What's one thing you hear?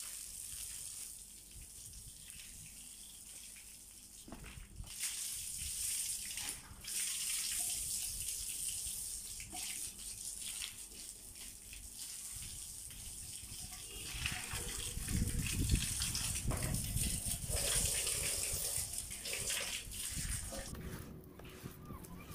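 Water sprays from a hose and splashes on tiles.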